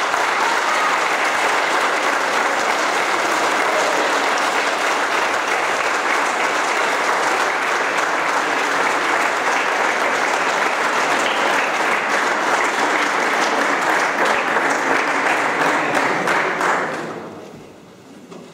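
A large audience applauds loudly in an echoing hall, then the clapping dies away.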